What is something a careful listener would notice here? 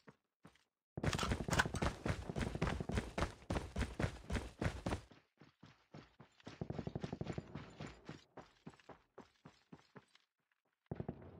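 Quick footsteps thud and crunch on a dirt path.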